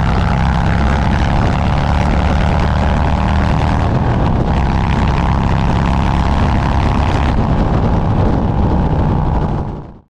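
A motorcycle engine rumbles steadily at speed.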